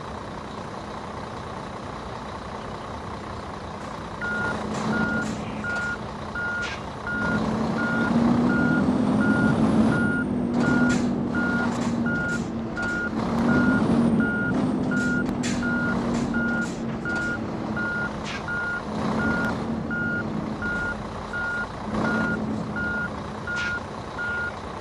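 A truck engine idles and revs with a low rumble.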